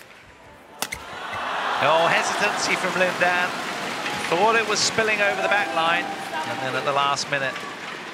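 A crowd in an indoor arena cheers and applauds.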